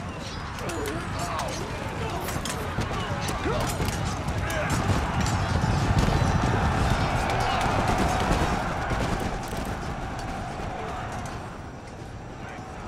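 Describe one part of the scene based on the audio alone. A large crowd of soldiers clashes and shouts in a battle.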